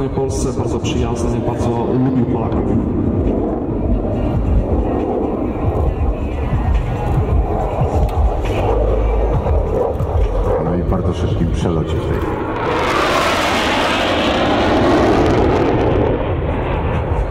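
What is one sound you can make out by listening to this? A jet engine roars loudly overhead and swells as the jet passes close.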